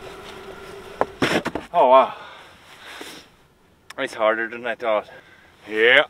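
A shovel scrapes and digs into snow.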